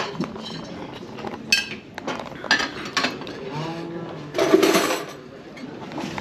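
Several people talk quietly in a large indoor room.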